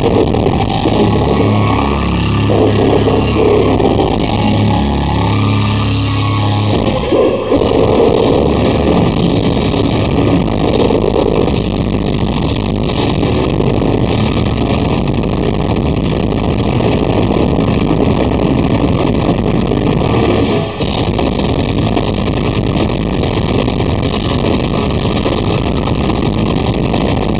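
Distorted electric guitars play loud, fast heavy metal through powerful amplifiers.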